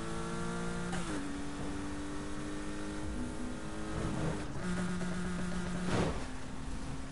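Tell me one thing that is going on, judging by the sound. Exhaust pops and bangs from a racing car.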